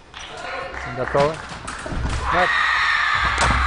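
A young woman shouts sharply.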